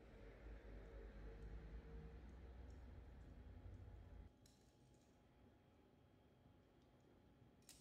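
Food is set down softly on a ceramic plate.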